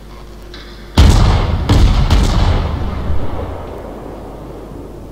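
Heavy naval guns fire with a deep, loud boom that rumbles away.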